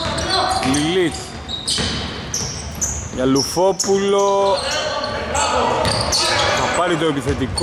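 A basketball bounces on the floor with hollow thuds.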